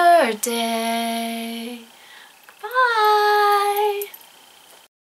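A woman sings long, drawn-out notes in a playful voice close by.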